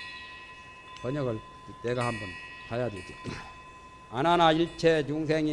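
An elderly man speaks calmly into a microphone, in a slow lecturing voice.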